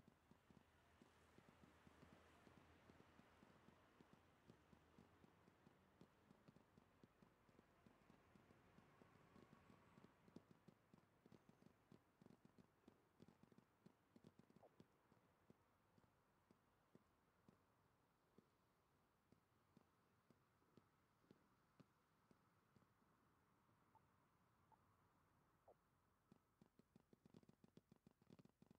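Quick footsteps patter on pavement.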